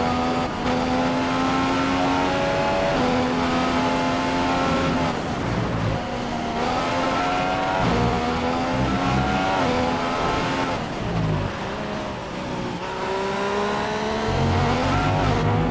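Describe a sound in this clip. A Formula One car's V6 turbo engine screams at high revs.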